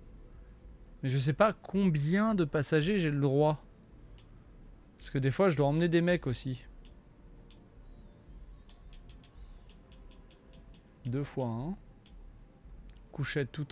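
A man talks casually and close to a microphone, in short bursts.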